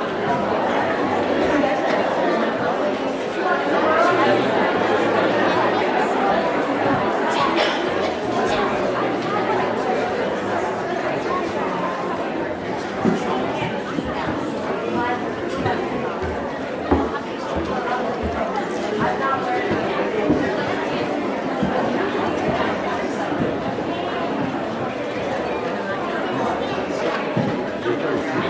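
An audience of men and women chatters in a large echoing hall.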